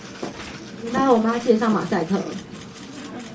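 A young woman speaks tearfully into a microphone, her voice breaking.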